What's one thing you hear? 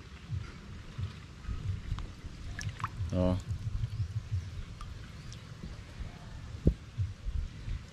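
Water drips and splashes as a hand scoops floating water plants from a pond.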